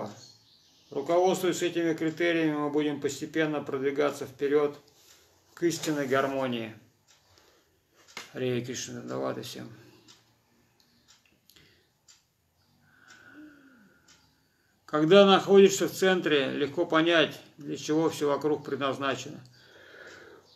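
A middle-aged man reads aloud close by in a melodic, chanting voice, with pauses.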